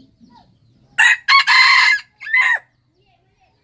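A rooster crows loudly and close by.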